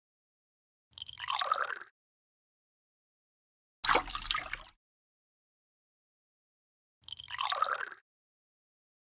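Water pours from a small cup into a trough.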